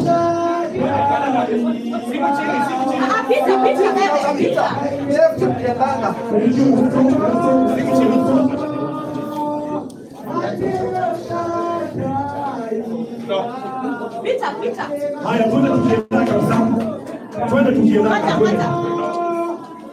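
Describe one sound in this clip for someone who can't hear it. A group of young men and women sing together in a room with some echo.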